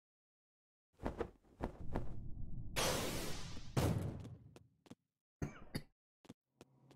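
Swords swish and magic blasts crackle in quick bursts.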